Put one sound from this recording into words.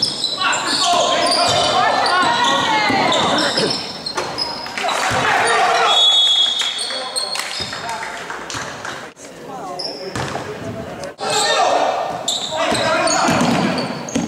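A basketball bounces on the court with echoing thuds.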